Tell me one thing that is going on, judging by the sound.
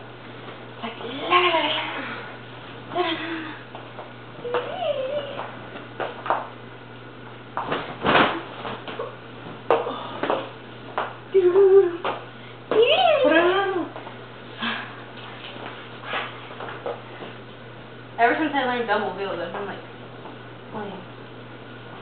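A young woman talks and sings playfully nearby.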